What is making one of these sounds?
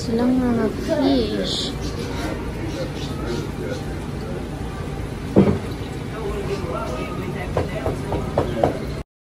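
Aquarium water pumps hum and bubble steadily.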